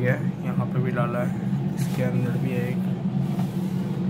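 A plastic freezer tray slides out with a light scrape.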